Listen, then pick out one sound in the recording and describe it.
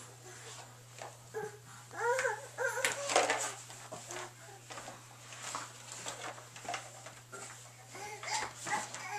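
Plastic toys clatter and knock in a bin.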